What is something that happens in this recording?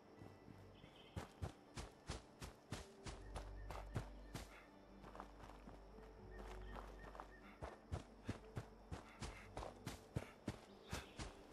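Footsteps crunch on dirt and grass at a steady walking pace.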